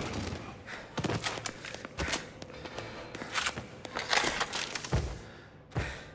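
Single gunshots crack and echo.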